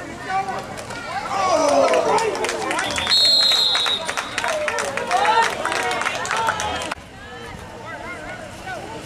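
Spectators cheer and shout loudly outdoors.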